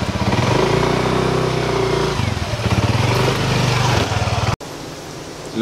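A motor scooter engine hums as it rides past close by.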